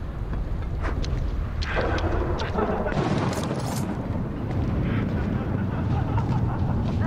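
Footsteps shuffle softly over wet ground.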